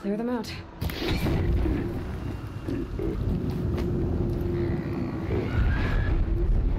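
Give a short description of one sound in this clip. Flames burst and roar with a deep rumble.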